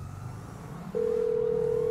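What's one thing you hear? A phone gives a steady beep.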